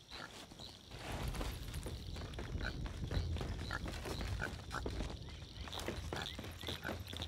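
Feet thud steadily on wooden ladder rungs.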